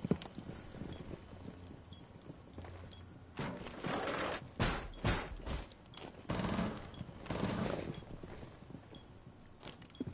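Footsteps tap on a hard floor nearby.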